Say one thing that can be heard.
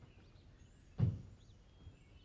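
A car door slams shut nearby.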